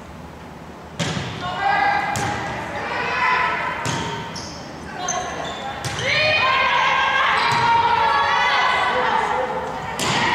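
A volleyball is struck with sharp thuds in a large echoing gym.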